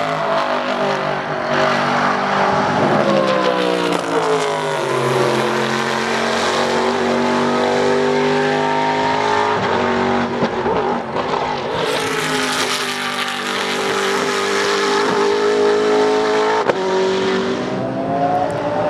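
Race car engines roar loudly as the cars speed past.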